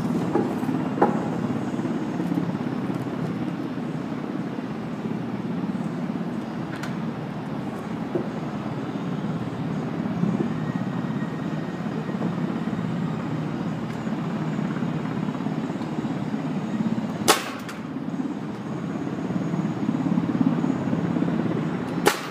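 A pneumatic nail gun fires nails into wood.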